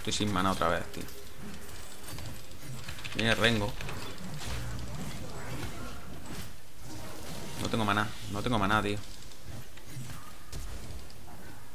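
Game spells crackle and whoosh during a fight.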